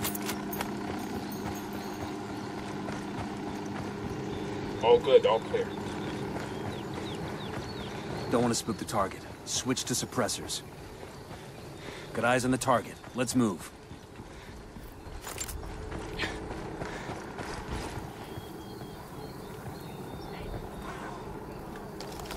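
Footsteps run over dirt and up stone steps.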